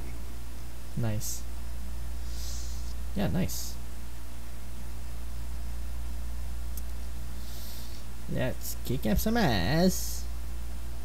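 A young man talks with animation into a close microphone, in short bursts.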